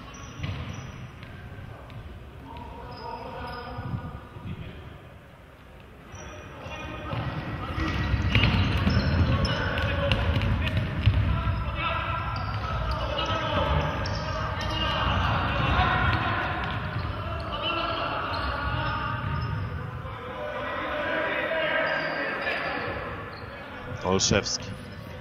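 A crowd cheers and chants in a large echoing hall.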